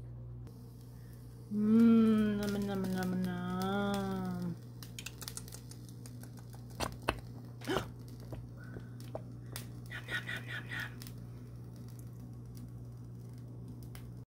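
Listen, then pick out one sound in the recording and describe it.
Thick sauce bubbles and pops in a pan.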